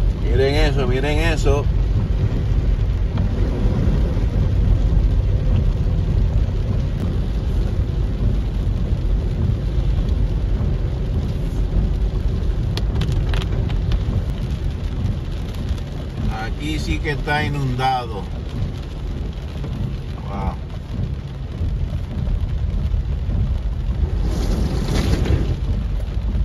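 A windshield wiper swishes across wet glass.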